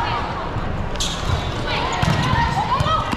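A volleyball is hit with a sharp slap in a large echoing hall.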